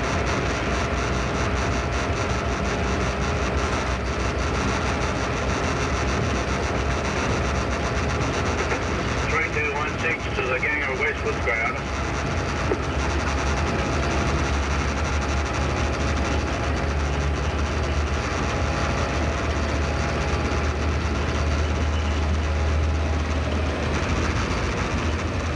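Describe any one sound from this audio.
Train wheels roll and clatter over the rails.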